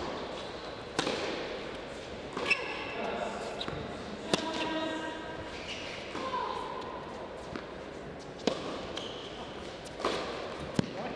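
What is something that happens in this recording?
A racket strikes a tennis ball with sharp pops, back and forth.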